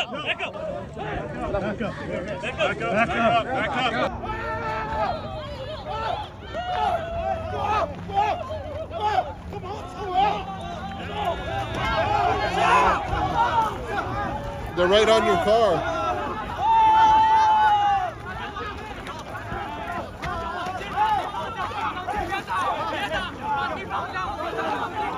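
A crowd of young men and women shout and argue loudly outdoors.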